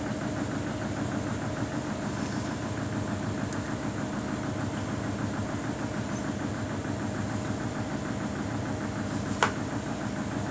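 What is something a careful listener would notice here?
A front-loading washing machine hums as its drum turns.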